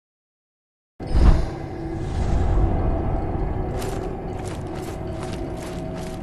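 A low rumbling noise rolls on steadily.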